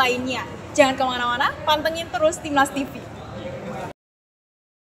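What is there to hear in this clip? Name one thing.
A young woman speaks with animation to a microphone close by.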